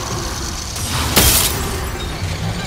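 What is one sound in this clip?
A magical blast bursts with a loud whoosh.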